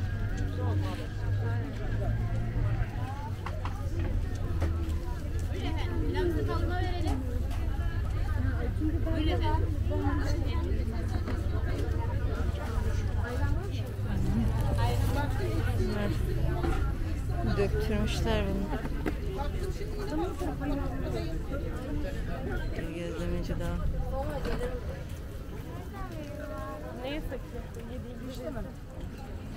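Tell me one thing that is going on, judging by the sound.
Women chat nearby in a lively outdoor crowd.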